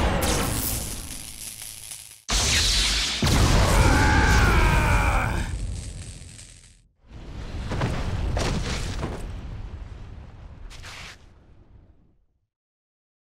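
Heavy blows and whooshing bursts crash loudly in a fight.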